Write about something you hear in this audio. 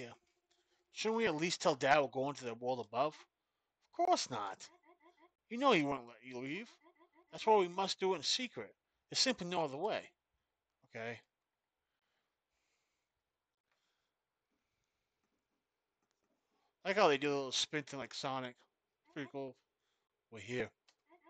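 A man reads out lines with animation, close to a microphone.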